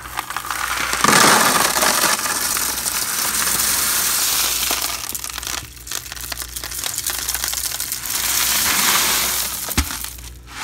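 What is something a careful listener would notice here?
Pebbles pour from a bucket and rattle into a plastic tub.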